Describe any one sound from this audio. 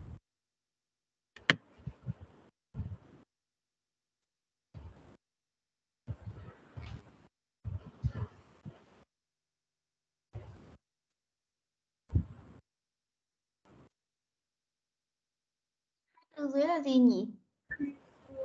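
A young child speaks in short bursts over an online call.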